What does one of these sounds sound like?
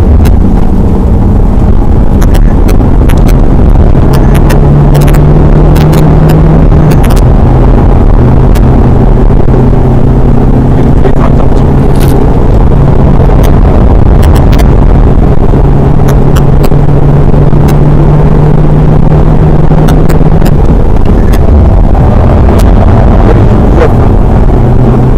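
A car engine roars loudly from inside the cabin, its pitch rising and falling as it revs through the gears.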